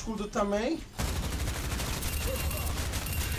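Gunfire rattles rapidly from a game.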